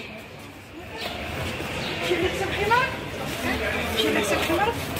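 A crowd of people chatters in a large indoor hall.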